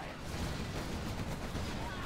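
Explosions boom and crackle as tanks fire at each other.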